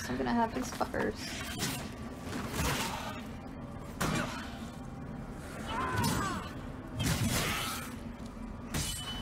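Heavy weapon blows strike with deep thuds.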